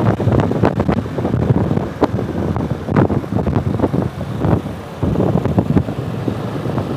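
Wind buffets loudly, rumbling and gusting.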